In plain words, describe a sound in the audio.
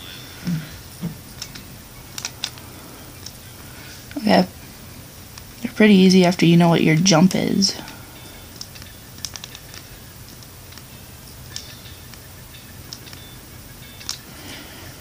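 A stylus taps lightly on a touchscreen.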